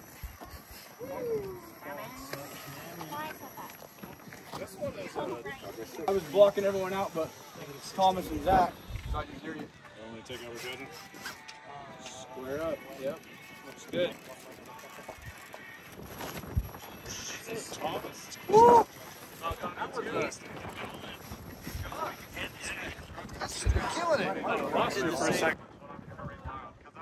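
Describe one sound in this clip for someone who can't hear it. A man talks and exclaims nearby, outdoors.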